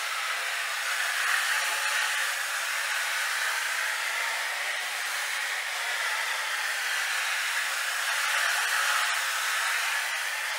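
A floor machine whirs steadily with a constant droning hum.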